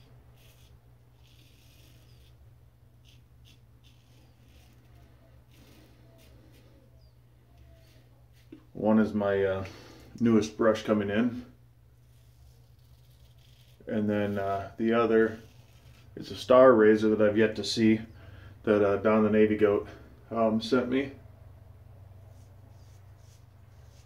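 A safety razor scrapes through lathered stubble.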